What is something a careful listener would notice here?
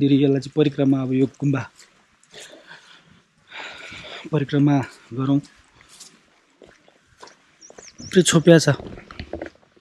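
A young man talks calmly and close by.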